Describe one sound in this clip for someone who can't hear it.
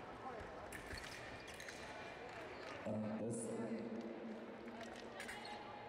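Fencing blades click and clash together.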